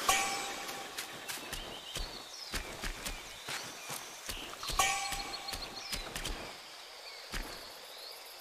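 Footsteps crunch over the ground.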